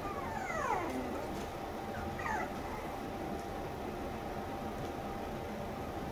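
A metal can rattles as a puppy pushes it.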